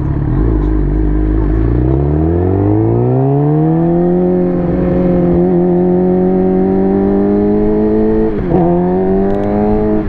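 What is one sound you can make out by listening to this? A motorcycle engine revs up, rising in pitch, then holds a steady drone.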